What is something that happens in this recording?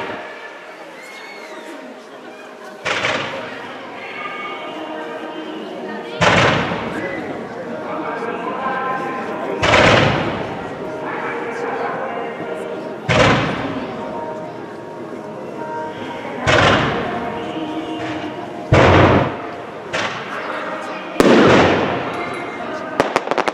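Firework rockets whoosh up into the sky, one after another.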